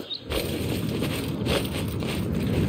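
A body lands heavily on the ground after a drop.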